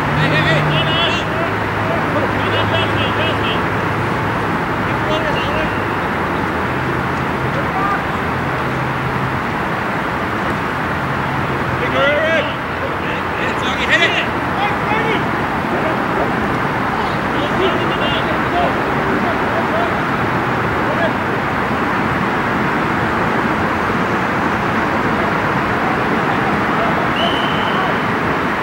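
Men shout and call out to each other from across an outdoor pitch.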